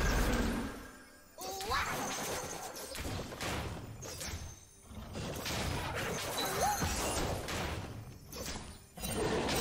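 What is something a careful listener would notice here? Video game spell effects whoosh and crackle in quick bursts during a fight.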